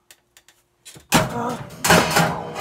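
Drums and cymbals crash loudly in a fast burst.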